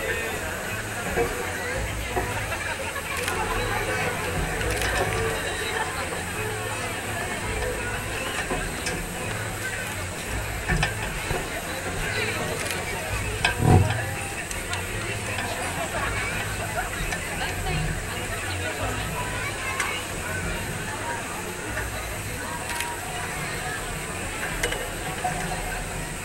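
A crowd of people chatters outdoors, heard from a distance.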